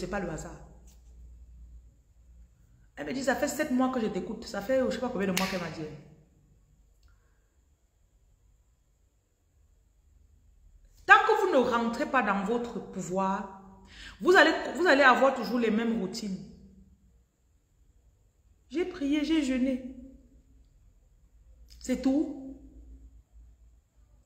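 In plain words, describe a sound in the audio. A woman speaks calmly and with pauses, close by.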